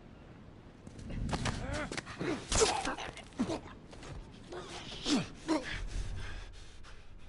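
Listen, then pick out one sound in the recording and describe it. Blows thud and bodies scuffle in a brief fight.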